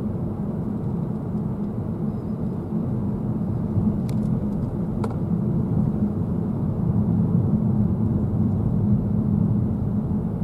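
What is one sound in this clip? A car engine hums steadily with road noise from the tyres, heard from inside the car.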